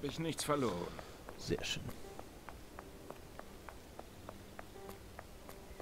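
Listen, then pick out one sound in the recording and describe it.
Footsteps tap steadily on stone paving.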